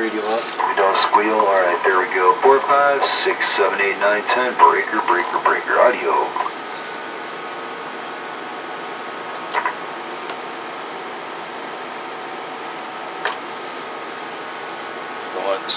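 A small cooling fan hums steadily.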